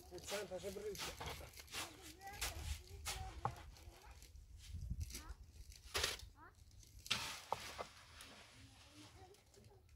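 A shovel scrapes mortar in a metal wheelbarrow.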